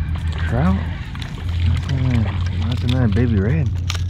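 A fish splashes and thrashes at the water's surface close by.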